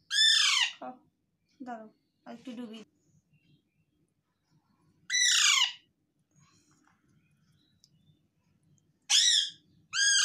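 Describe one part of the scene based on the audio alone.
A parrot gives loud, shrill screeches, with pauses between.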